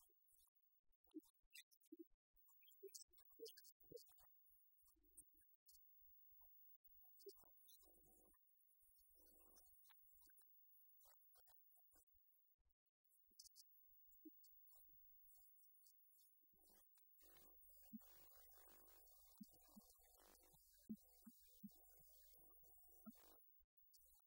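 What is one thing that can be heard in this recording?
An acoustic guitar is plucked softly.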